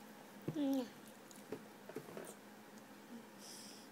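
A toddler sucks and slurps from a bottle.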